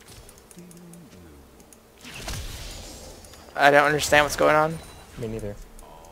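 Weapons clash and spells burst in a fight.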